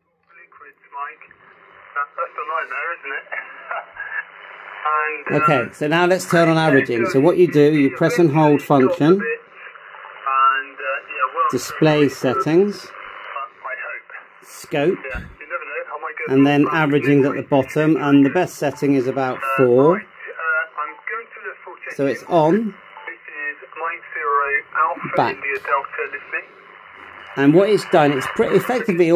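A distant voice comes thin and crackly through a radio loudspeaker.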